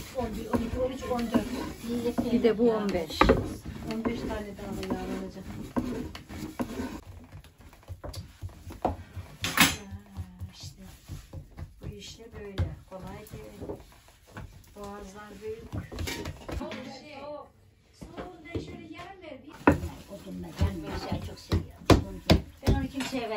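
Women talk calmly nearby.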